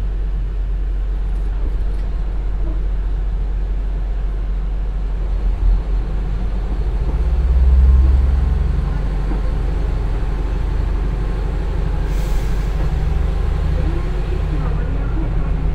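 A passing train roars by close and then is gone.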